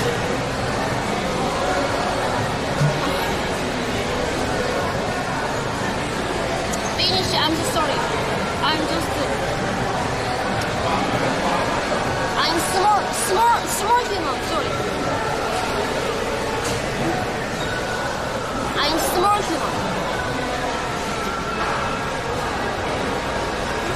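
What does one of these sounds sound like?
A young woman sips a drink through a straw.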